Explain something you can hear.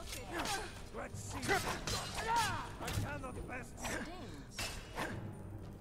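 Metal blades clash and clang in a fight.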